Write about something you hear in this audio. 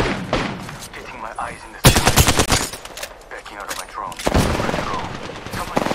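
A gun is reloaded with quick metallic clicks.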